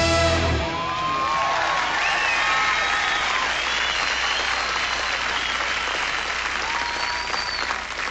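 Audience members whistle loudly.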